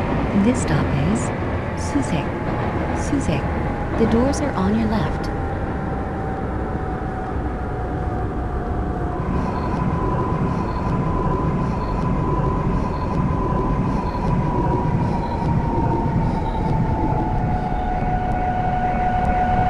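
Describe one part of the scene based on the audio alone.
An electric train motor whines, its pitch slowly falling.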